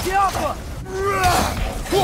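An axe whooshes and strikes during a fight.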